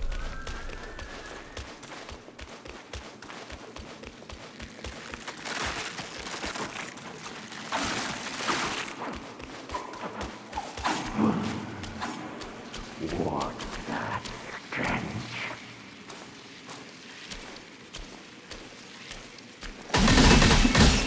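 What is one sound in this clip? Footsteps crunch steadily over stone.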